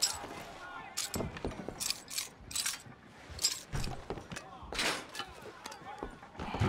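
Metal clicks and rattles at a door lock.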